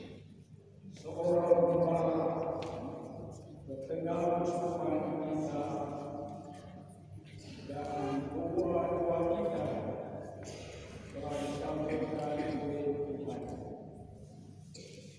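A man chants slowly through a loudspeaker in a large echoing hall.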